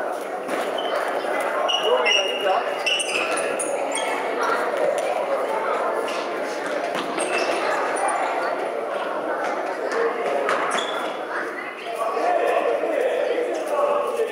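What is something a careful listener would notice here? A ball thuds against the floor.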